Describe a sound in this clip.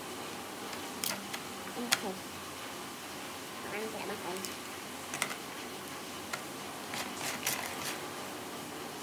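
Crab shells click and clatter against a plastic tub as hands move them.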